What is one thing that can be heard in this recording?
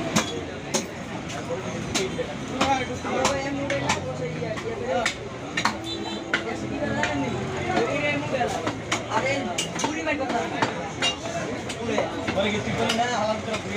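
A knife slices through raw meat.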